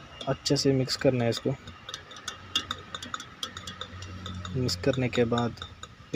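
A plastic syringe stirs liquid in a metal cup, clinking and scraping lightly.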